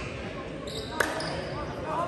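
A volleyball thumps off a hand.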